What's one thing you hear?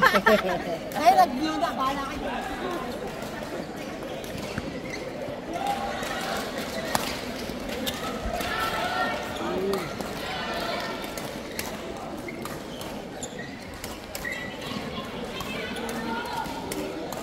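Voices of men and women chatter throughout a large echoing hall.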